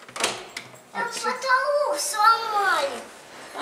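A young girl speaks loudly in a high voice, close by.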